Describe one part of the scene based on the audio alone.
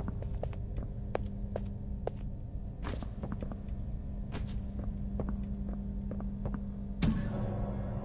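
Footsteps thud steadily up hollow stairs.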